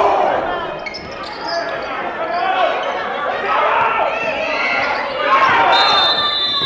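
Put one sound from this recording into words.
A crowd murmurs in a large echoing gym.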